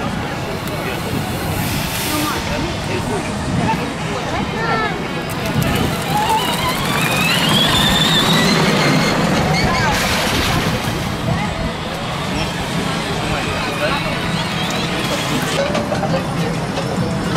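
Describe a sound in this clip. A lively outdoor crowd chatters in the background.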